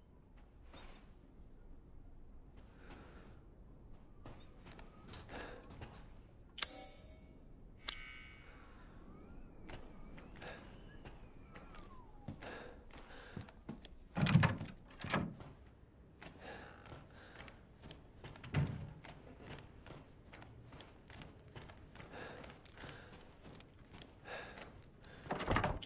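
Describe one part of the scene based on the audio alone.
Footsteps thud slowly across a wooden floor.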